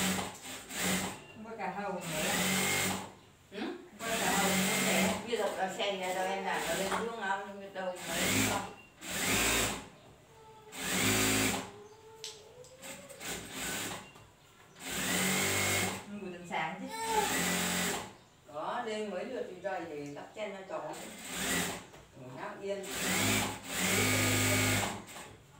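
A sewing machine runs in short bursts, whirring and stitching.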